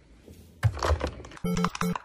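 A phone handset clatters onto its base.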